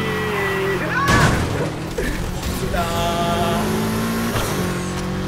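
Tyres screech as a car slides through bends.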